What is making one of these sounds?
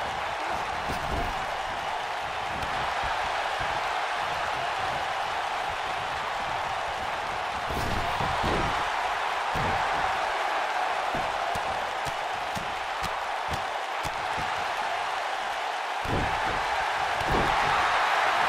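Bodies thud onto a wrestling ring mat.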